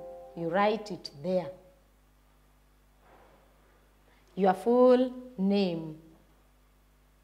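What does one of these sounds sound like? A woman speaks clearly and slowly, as if teaching, close to a microphone.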